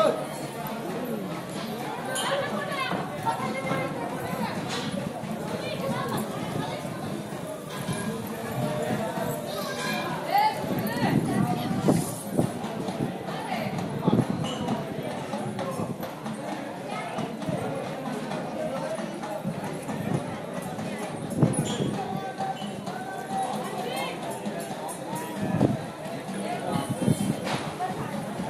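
Men and women chatter nearby in a crowd outdoors.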